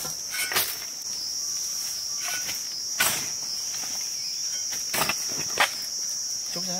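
A digging bar thuds and scrapes into soil.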